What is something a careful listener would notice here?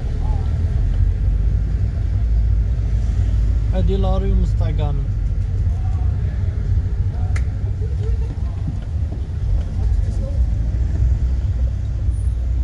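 A car engine rumbles low and steady from inside a moving car.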